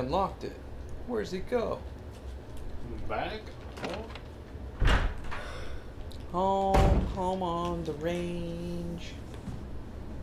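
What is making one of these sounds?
A heavy wooden door creaks open slowly.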